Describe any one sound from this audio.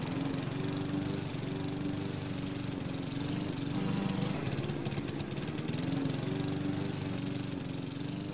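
A lawn mower engine drones steadily nearby.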